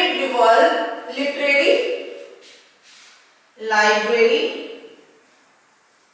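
A woman speaks calmly and clearly, as if teaching.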